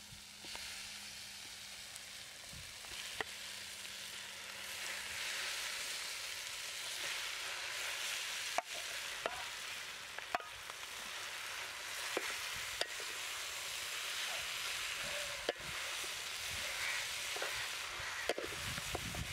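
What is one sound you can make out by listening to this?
Food crackles and hisses steadily over a fire.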